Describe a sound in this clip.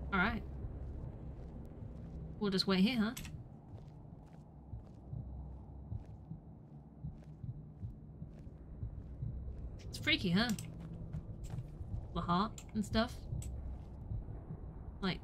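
A young woman speaks in short bursts into a microphone, close by.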